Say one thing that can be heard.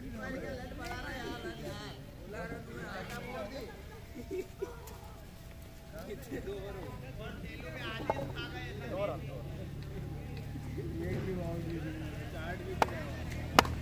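Several men talk and call out outdoors.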